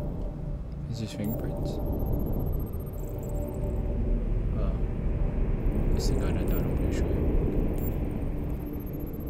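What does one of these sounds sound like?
A young man talks casually and close into a microphone.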